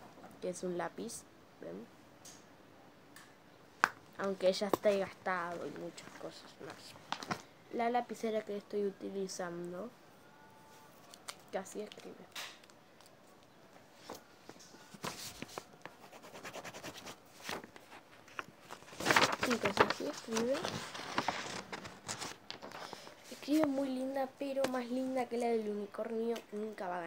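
A young girl talks calmly and close by.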